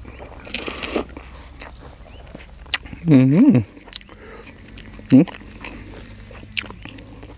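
A man chews crunchy fresh leaves close by.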